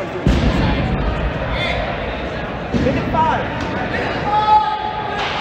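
Players shout and call out across a large echoing gym.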